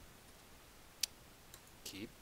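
A game menu button clicks sharply once.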